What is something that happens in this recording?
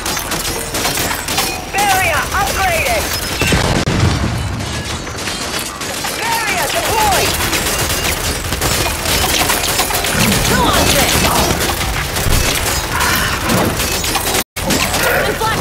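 Rapid gunfire rattles on and on.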